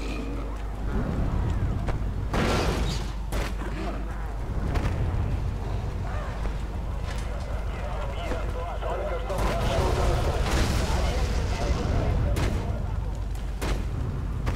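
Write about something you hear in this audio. A deep rumble of destruction rolls on.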